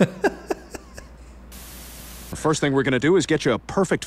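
A woman laughs softly close to a microphone.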